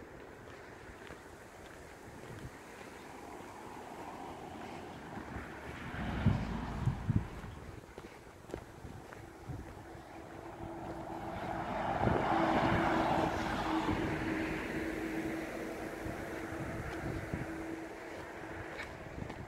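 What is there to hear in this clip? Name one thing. Footsteps crunch on a dirt path close by.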